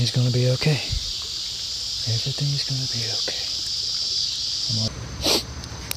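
A shallow stream trickles over stones.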